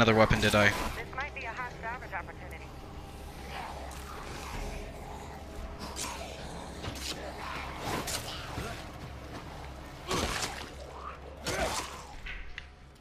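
Heavy blows thud and crack in a scuffle.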